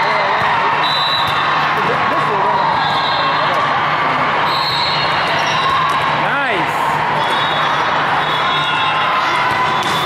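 Many voices chatter and call out in a large echoing hall.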